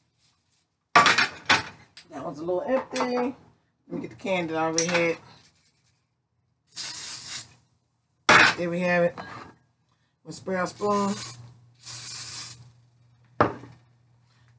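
A metal pan clatters on a stove.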